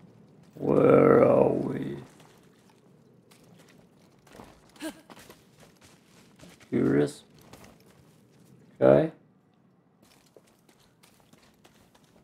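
Footsteps run over grass and stone.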